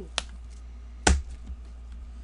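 A cardboard box knocks down onto a table.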